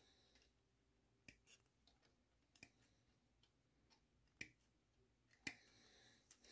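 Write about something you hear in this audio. Small cutters snip plastic parts from a frame with sharp clicks.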